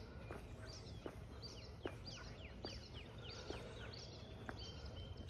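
Footsteps tap steadily on concrete.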